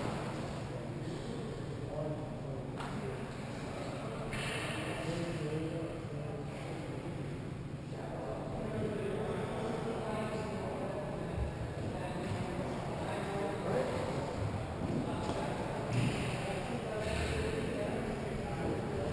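Ice skates scrape and swish across the ice in a large echoing rink.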